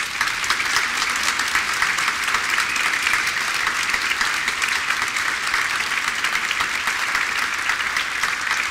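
A large crowd applauds steadily in a big hall.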